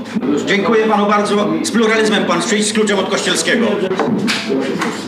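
A middle-aged man speaks with animation into a microphone in an echoing room.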